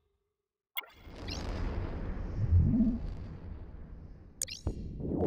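Ship weapons fire with heavy, rumbling blasts.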